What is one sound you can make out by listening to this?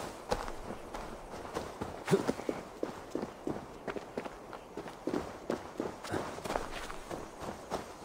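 Footsteps rustle through grass and undergrowth at a steady pace.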